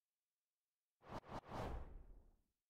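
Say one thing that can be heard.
A whoosh sweeps in and fades.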